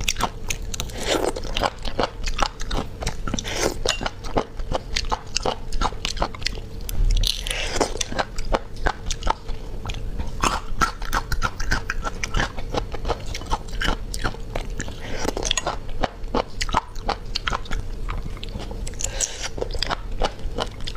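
A young woman slurps and sucks snails from their shells close to a microphone.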